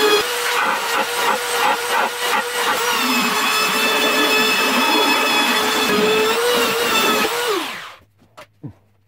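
An electric sander whirs loudly against wood, then winds down to a stop.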